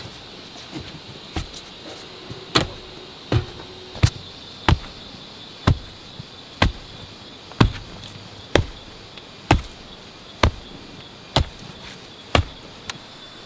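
Bare feet stamp on loose soil with dull thuds.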